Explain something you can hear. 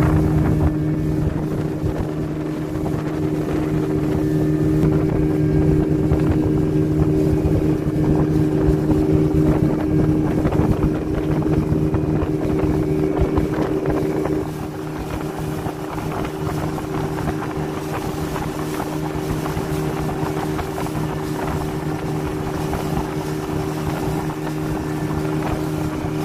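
A boat's outboard motor hums steadily throughout.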